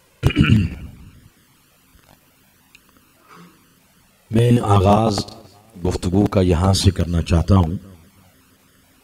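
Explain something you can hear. A man chants melodiously into a microphone, with a reverberant echo.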